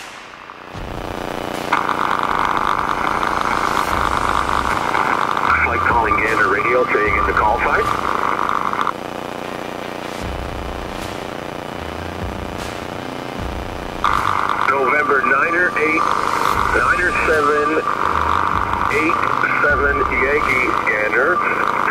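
An aircraft engine drones steadily throughout.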